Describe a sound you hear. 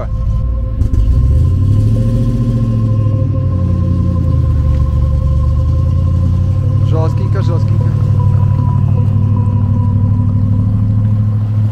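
A heavy truck engine rumbles steadily, close by.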